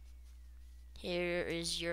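A computer plays a short shutdown chime.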